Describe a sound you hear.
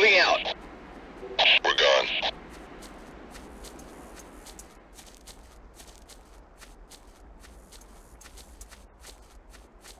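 Soldiers' footsteps thud softly on grass.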